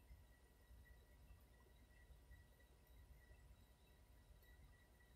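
A vehicle hums with a low, steady rumble from inside.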